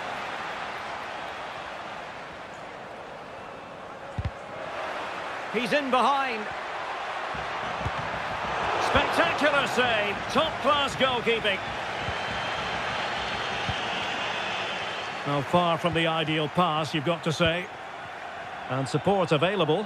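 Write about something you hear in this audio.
A stadium crowd murmurs and roars.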